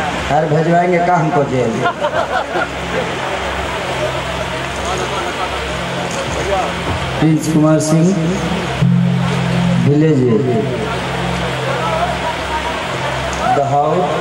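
A man speaks loudly into a microphone over loudspeakers.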